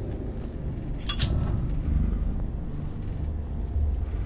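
A lighter clicks and flares.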